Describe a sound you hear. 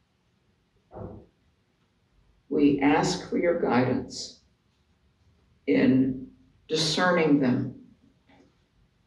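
An elderly woman speaks calmly into a microphone, reading out in pauses.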